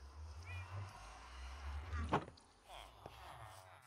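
A wooden chest lid thuds shut.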